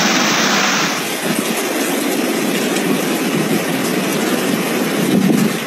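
Strong wind howls and rain lashes down outdoors.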